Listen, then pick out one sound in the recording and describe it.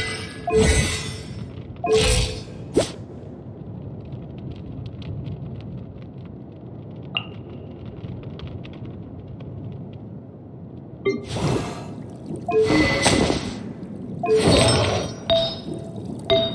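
Short menu chimes and clicks sound as selections change.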